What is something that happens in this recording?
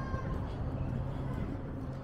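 Footsteps pass on pavement.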